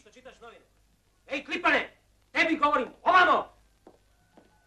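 A man shouts loudly in short bursts.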